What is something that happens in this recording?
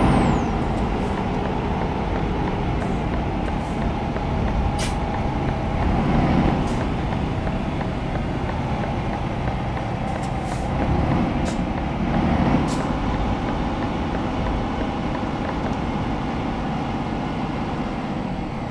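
Tyres roll on the road with a steady rush.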